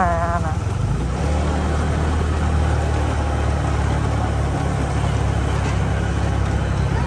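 A bus engine idles nearby with a steady low hum.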